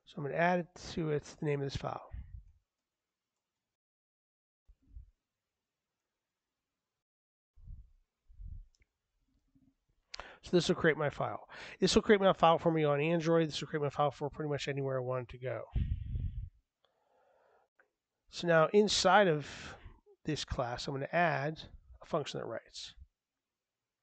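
A man talks calmly and closely into a microphone, pausing now and then.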